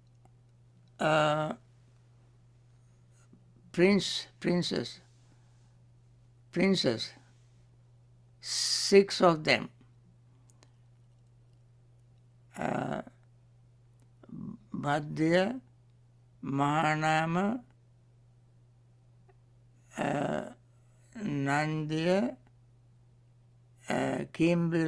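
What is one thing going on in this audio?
A man chants slowly in short phrases through a microphone, with pauses between them.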